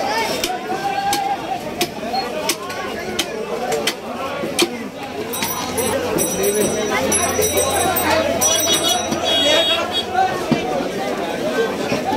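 A heavy knife chops through meat and bone with dull knocks.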